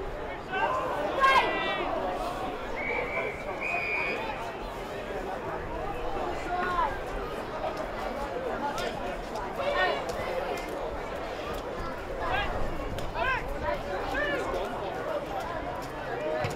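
Young men shout to each other across an open field outdoors.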